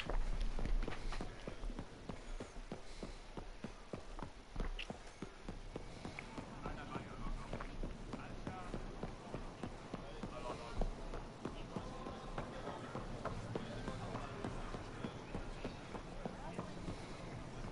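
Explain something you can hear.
Footsteps run quickly on a hard floor.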